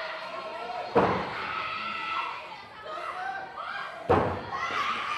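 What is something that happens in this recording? Bodies slam onto a wrestling ring mat with a hollow boom.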